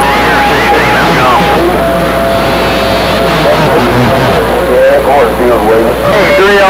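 A radio loudspeaker plays a noisy, warbling signal.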